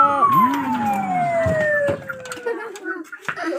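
A claw machine plays a falling electronic tone.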